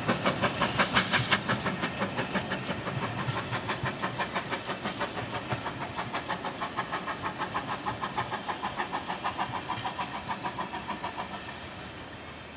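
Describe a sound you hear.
A steam locomotive chuffs loudly and rhythmically close by, slowly fading.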